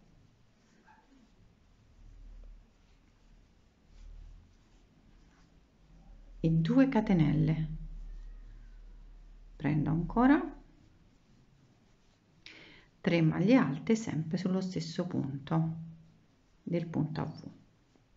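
A crochet hook softly clicks and scrapes against yarn.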